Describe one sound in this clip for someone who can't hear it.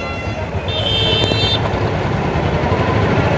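A motorbike engine runs nearby as it passes.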